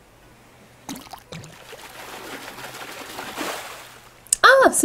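Water splashes and churns as a fish is pulled from the water.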